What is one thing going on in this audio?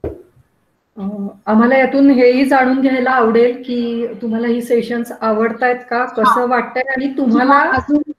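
A young woman speaks steadily over an online call.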